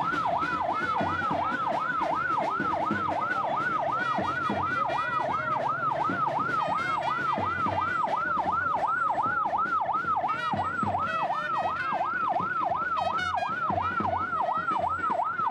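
An ambulance siren wails rapidly up and down, close by.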